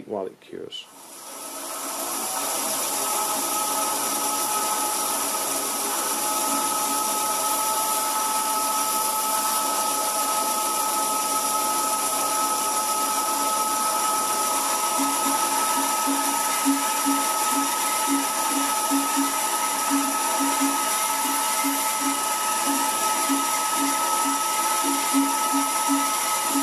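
A band saw whines steadily as it cuts through sheet metal.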